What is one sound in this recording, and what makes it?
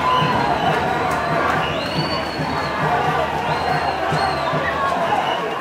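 Young men cheer and shout together outdoors.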